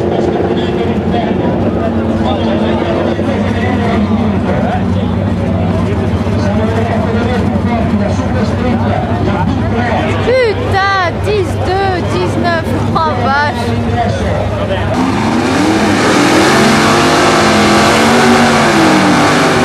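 Powerful car engines roar loudly outdoors.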